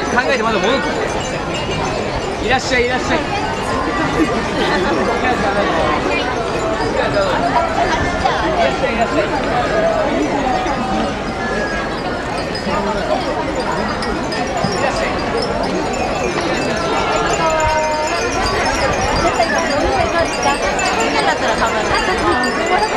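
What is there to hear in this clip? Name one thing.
A crowd of men and women chatters all around, close by and loud.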